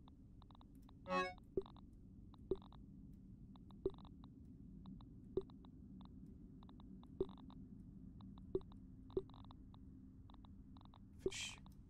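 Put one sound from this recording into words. Short, soft menu clicks sound one after another as items are moved.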